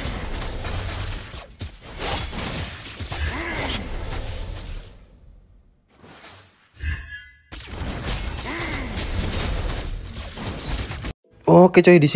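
Video game battle effects whoosh and clash.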